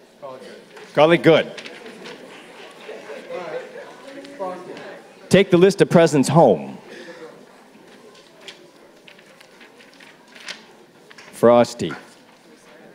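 A man in the audience talks loudly nearby.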